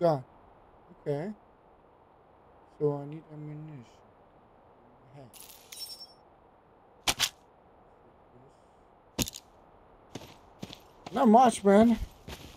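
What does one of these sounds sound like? A young man speaks into a close microphone in short bursts, with animation.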